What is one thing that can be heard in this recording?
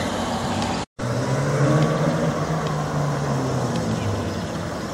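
A sports car engine rumbles close by.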